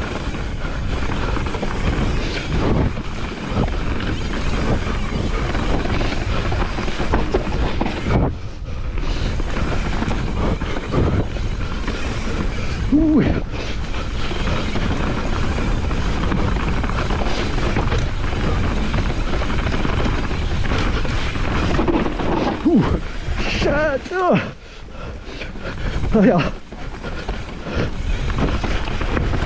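Bike tyres rumble and crunch over a dirt trail.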